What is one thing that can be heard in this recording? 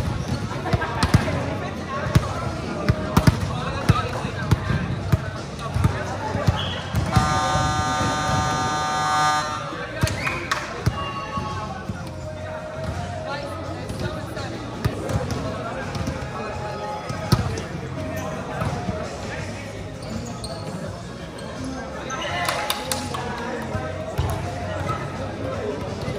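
Volleyballs thump against hands and bounce on a hard floor in a large echoing hall.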